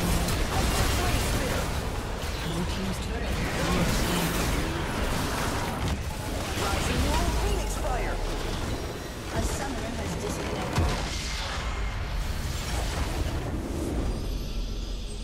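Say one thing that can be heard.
Game spells crackle and whoosh in a busy fight.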